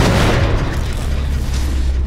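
Sparks crackle and hiss from a damaged machine.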